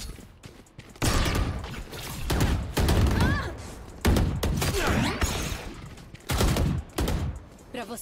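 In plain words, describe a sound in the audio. Gunshots from a video game fire in quick bursts.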